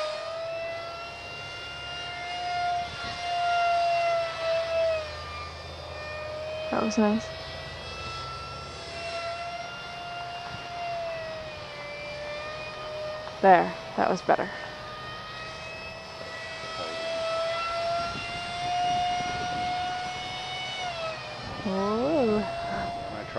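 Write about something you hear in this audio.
A model jet's engine whines steadily overhead, its pitch rising and falling as it flies.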